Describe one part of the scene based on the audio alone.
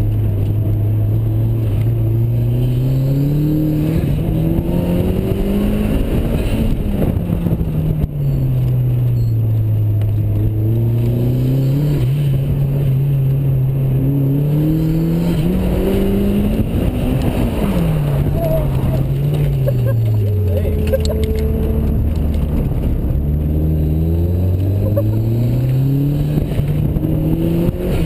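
A car engine revs up and down loudly as the car speeds through tight turns.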